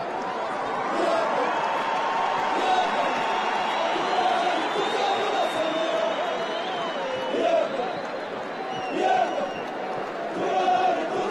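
A large crowd cheers in a large stadium.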